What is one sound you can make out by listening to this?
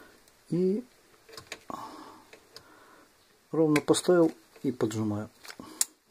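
Metal pliers click as they squeeze.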